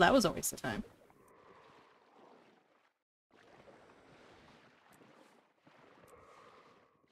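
Water swishes softly as a swimmer moves underwater.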